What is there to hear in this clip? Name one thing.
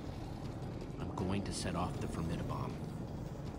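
A young man speaks quietly.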